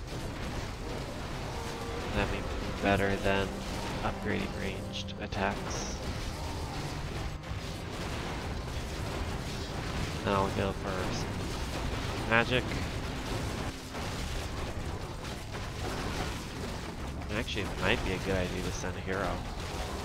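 Weapons clash and clang in a busy battle.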